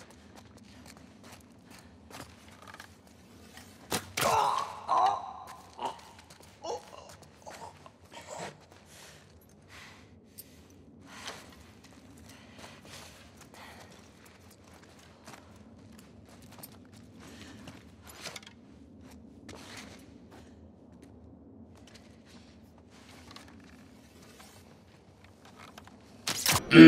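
Footsteps shuffle softly over gritty debris.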